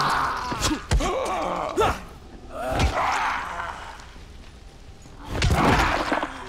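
A snarling creature growls and shrieks up close.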